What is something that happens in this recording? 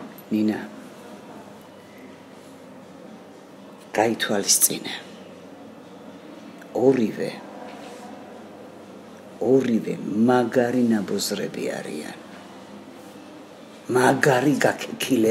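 An elderly woman speaks close by in short, emotional bursts.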